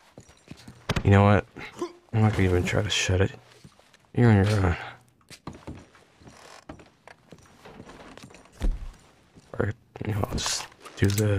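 A man speaks in a low, gruff voice close by.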